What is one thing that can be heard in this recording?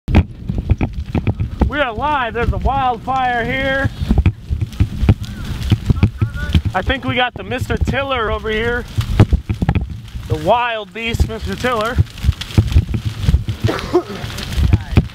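Burning grass crackles and pops.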